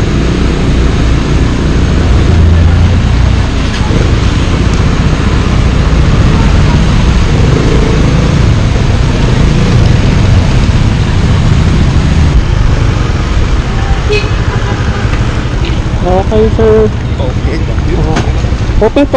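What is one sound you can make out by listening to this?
A motor scooter engine hums steadily up close.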